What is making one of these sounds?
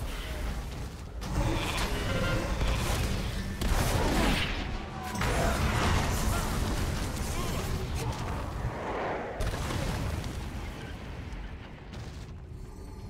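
Weapons clash and strike in a loud battle.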